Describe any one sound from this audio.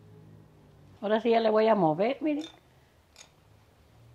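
A metal spoon scrapes and clinks against a ceramic bowl while stirring.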